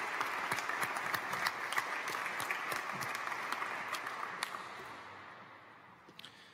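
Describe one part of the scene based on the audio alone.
A crowd applauds in a large echoing hall, then the clapping fades away.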